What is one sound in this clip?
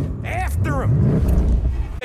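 A man speaks urgently from inside a car.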